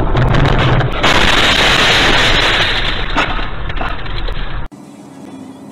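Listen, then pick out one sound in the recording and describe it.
A loud bang bursts out, followed by a rushing roar.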